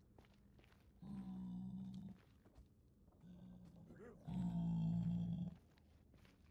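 A low creature grunts and snorts nearby.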